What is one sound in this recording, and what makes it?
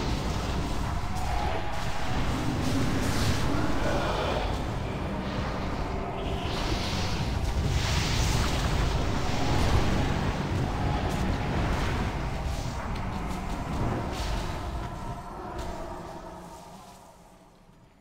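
Spell and battle effects crash and clash loudly.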